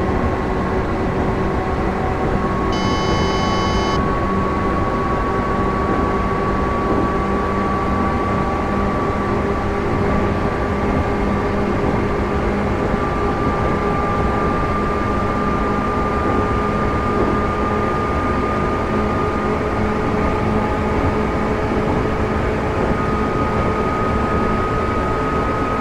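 Train wheels rumble steadily over the rails.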